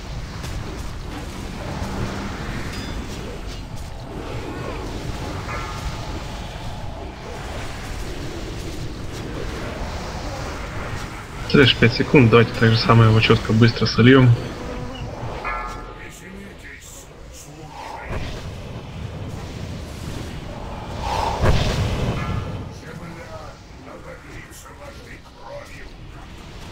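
Magic spells crackle and burst.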